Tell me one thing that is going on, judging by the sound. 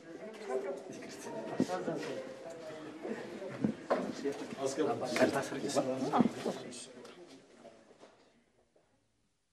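A man speaks calmly to a small group nearby.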